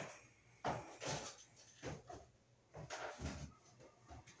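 A man bumps and knocks things about nearby.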